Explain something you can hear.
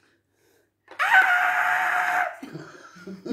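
A woman laughs loudly close by.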